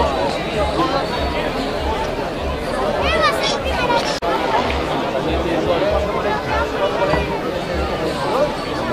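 A crowd of spectators chatters and calls out outdoors at a distance.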